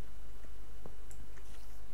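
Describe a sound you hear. A pickaxe chips at stone blocks with short taps.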